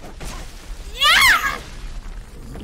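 A young woman cries out loudly in a falling shriek.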